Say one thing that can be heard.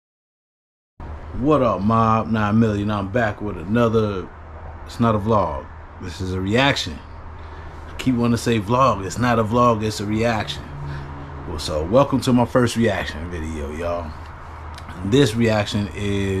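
A man talks with animation, heard close up.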